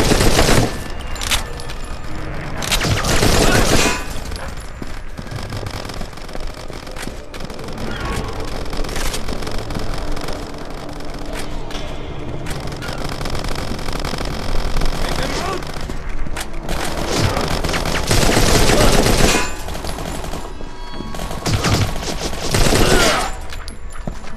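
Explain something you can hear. Rapid gunfire bursts loudly.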